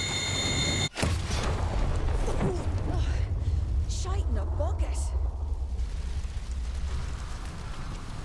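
A fire roars with a low rumble.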